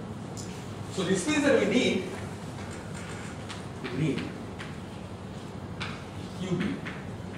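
A man lectures at a distance, speaking in short phrases.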